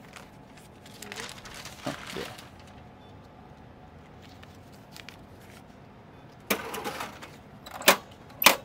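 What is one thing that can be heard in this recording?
A paper bag rustles.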